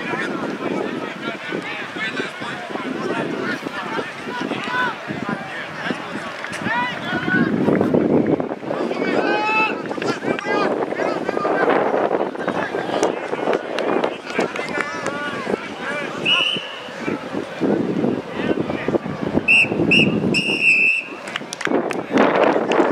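Young players shout to each other during a game.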